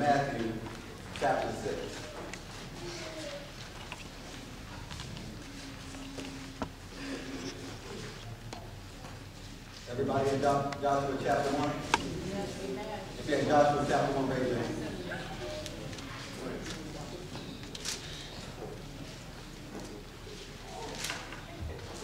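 A man preaches through a microphone in an echoing hall, speaking with animation and pauses.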